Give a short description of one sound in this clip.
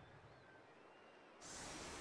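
A magical whoosh sounds as a spell flares.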